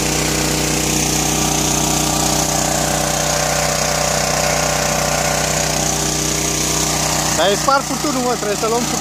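Water gushes out of a hose and splashes onto grass.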